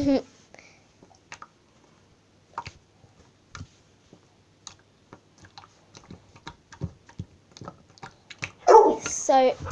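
Hands squish and knead wet slime with soft sticky clicks.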